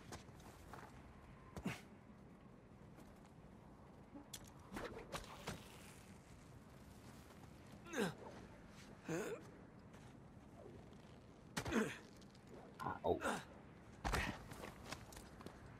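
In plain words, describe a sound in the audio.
Footsteps crunch on snowy rock.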